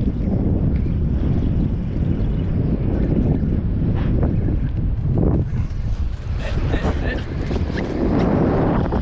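Small waves lap against a boat's hull.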